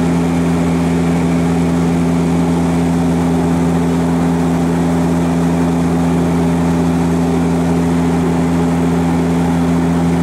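A propeller engine drones loudly and steadily, heard from inside an aircraft cabin.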